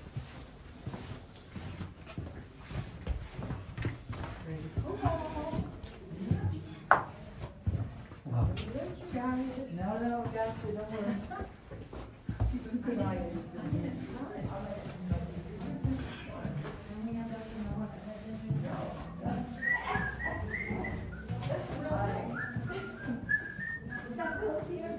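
Footsteps shuffle and scrape over rocky ground in a narrow passage.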